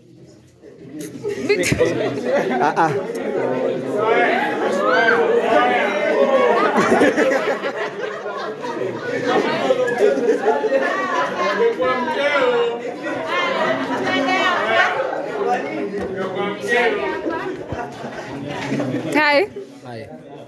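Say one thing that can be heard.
A group of young men and women laugh and chatter excitedly close by.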